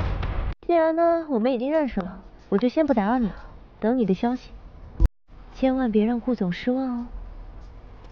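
A young woman speaks close by, with animation.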